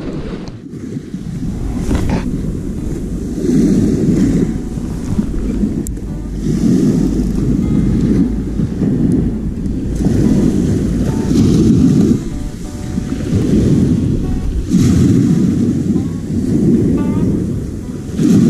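Small waves break and wash onto a shore.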